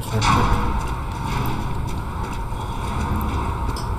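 A heavy iron gate creaks and swings open.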